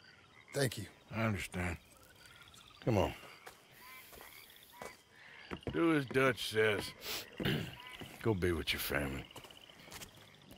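A second man answers calmly in a low voice.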